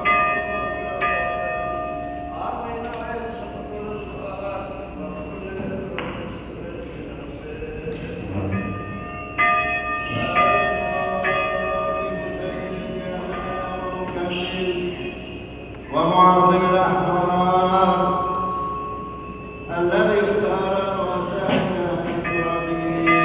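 Elderly men chant a prayer together in a slow, steady melody, echoing in a large hall.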